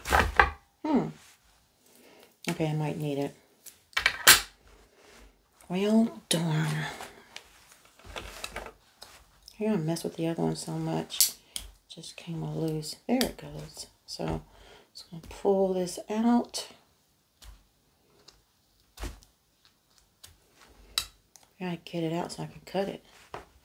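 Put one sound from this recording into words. A woman talks calmly and close by, as if explaining.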